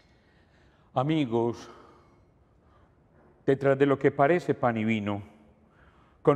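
An elderly man chants calmly through a microphone.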